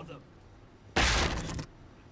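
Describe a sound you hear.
A heavy metal door bangs open.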